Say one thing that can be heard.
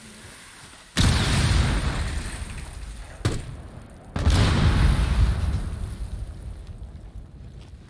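Explosions boom loudly and rumble.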